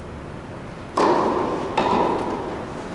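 A tennis ball bounces on a hard court in a large echoing hall.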